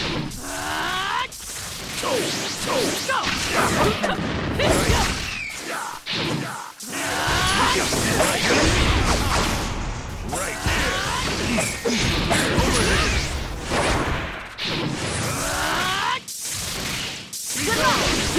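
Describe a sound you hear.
Energy blasts whoosh and crackle again and again.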